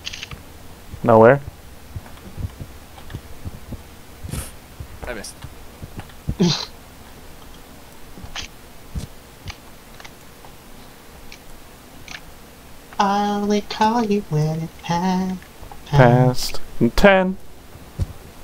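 A young man talks through a microphone with animation, in short bursts.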